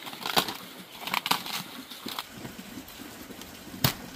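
A knife cuts through a cabbage stem with a crisp snap.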